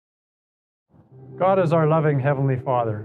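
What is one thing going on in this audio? A middle-aged man speaks clearly into a microphone.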